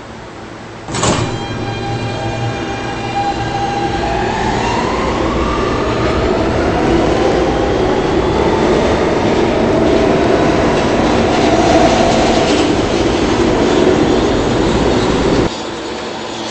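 Train wheels rumble and clatter along the rails.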